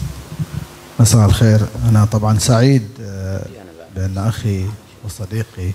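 A man speaks close to a microphone, loud and animated.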